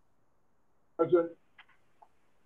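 An elderly man speaks briefly over an online call.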